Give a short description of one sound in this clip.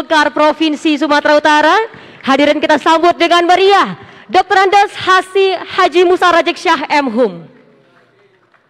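A man speaks with animation into a microphone over a loudspeaker, with echo.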